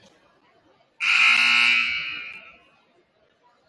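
A referee's whistle blows loudly once.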